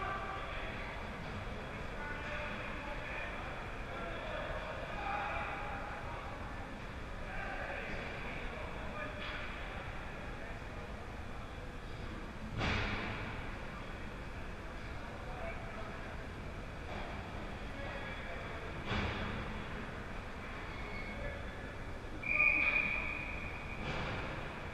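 Skates scrape across the ice in a large echoing rink.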